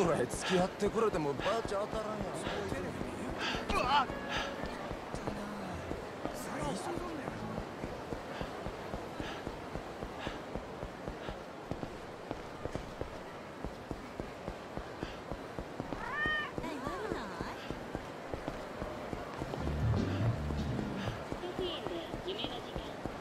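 Quick footsteps run on pavement.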